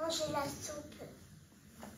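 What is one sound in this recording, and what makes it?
A young girl speaks close by.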